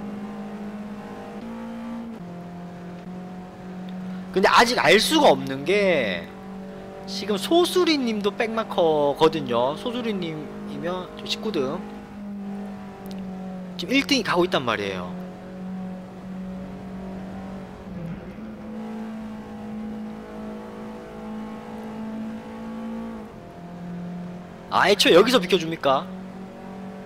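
A race car engine hums steadily at high revs.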